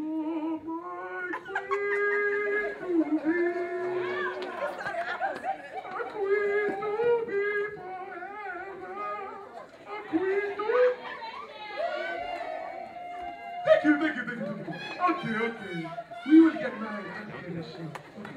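A young woman sings through a microphone in a large hall.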